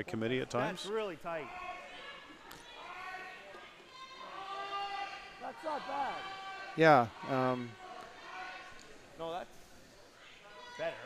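Men shout loud, drawn-out calls in a large echoing arena.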